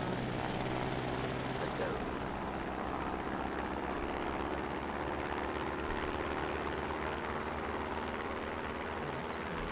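A jet engine roars steadily as a plane takes off and flies.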